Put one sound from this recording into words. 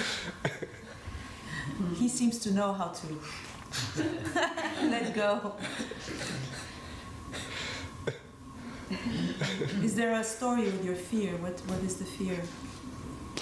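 A middle-aged woman speaks warmly and with animation close to a microphone.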